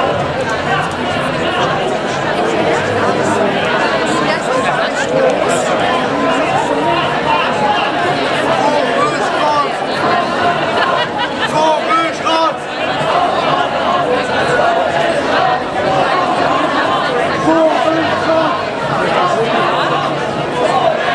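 A large crowd of men and women chatters loudly outdoors.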